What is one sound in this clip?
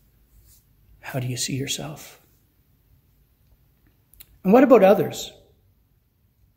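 An elderly man speaks calmly into a microphone, close by, in short phrases.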